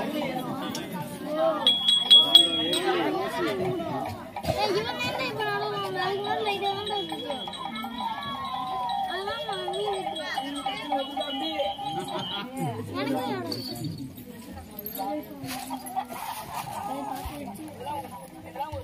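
Women sing a ritual song together nearby.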